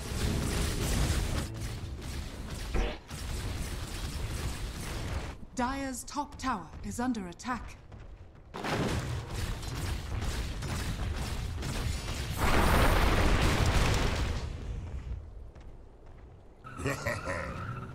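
Video game combat sounds crash and whoosh with spells and blows.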